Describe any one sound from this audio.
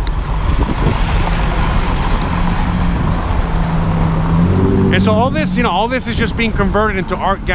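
A van's engine hums as it passes close by.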